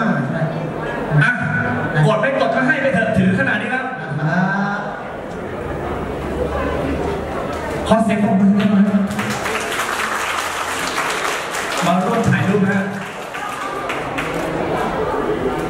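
A young man talks with animation over a loudspeaker microphone.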